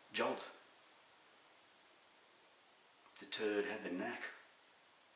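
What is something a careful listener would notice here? A middle-aged man speaks calmly and close to a microphone, in short phrases.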